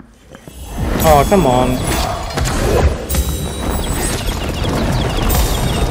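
A magic spell crackles and whooshes in bursts.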